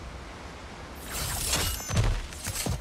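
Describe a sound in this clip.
A game character drops from a ledge with a rushing whoosh.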